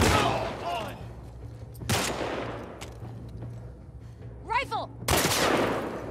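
Gunshots crack and echo outdoors.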